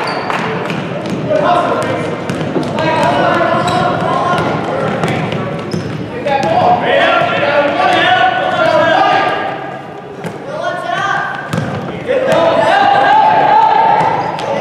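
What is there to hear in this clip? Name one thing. Adults and children shout and cheer loudly from the sidelines.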